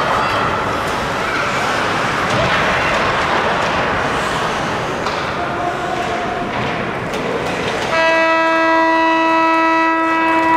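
Sticks clack against a puck.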